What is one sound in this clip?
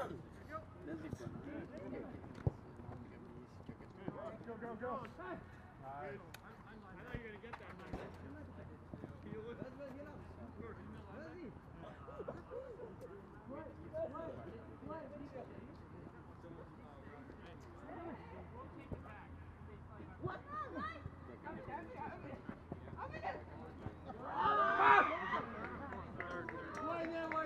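Several young men call out to one another outdoors across an open field.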